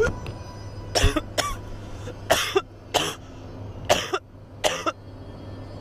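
A young man coughs loudly.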